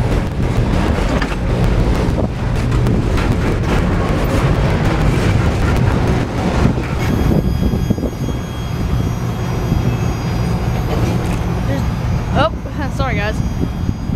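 Freight cars rumble and clatter loudly along the rails close by.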